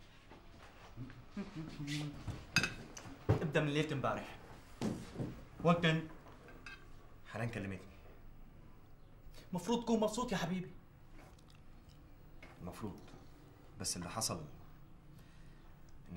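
A man answers calmly nearby.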